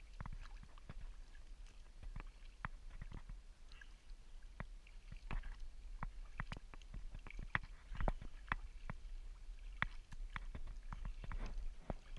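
A kayak paddle splashes and drips in calm water.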